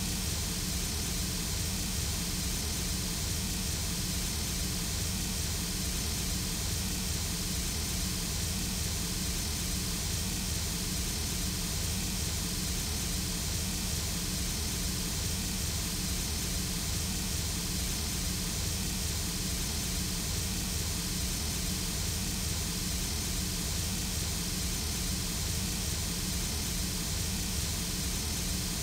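A steam locomotive idles nearby with a steady hiss and low rumble.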